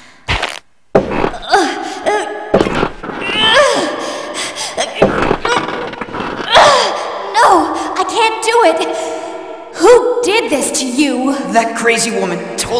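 A young man speaks weakly and strains in pain.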